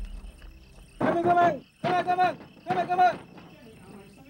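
A man shouts loudly several times.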